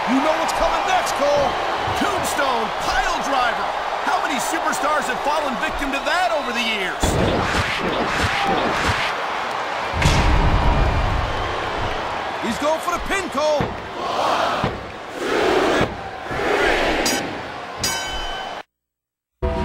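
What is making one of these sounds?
A crowd cheers and roars throughout.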